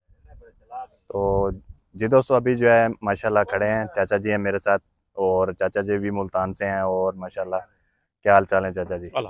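A young man speaks with animation close to the microphone.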